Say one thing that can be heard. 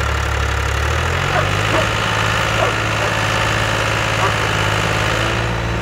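A tractor engine rises in pitch as the tractor moves.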